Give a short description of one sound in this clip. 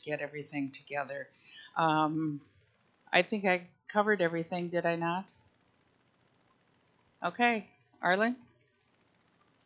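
A woman speaks calmly into a microphone over a loudspeaker.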